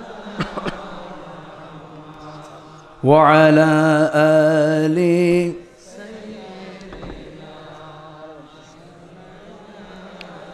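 A man speaks into a microphone with animation, his voice rising into a loud, drawn-out chant.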